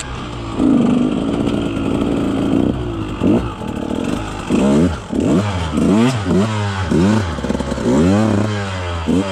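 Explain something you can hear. A dirt bike engine revs up and down in sharp bursts close by.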